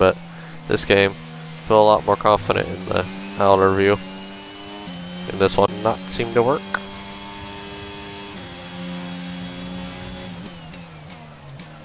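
A racing car engine whines at high revs, dropping and rising in pitch as gears change.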